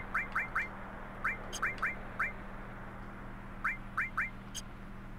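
Short rising electronic menu blips chirp in quick bursts.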